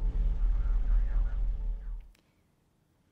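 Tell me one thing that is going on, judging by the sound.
A deep rumble roars loudly and cuts off.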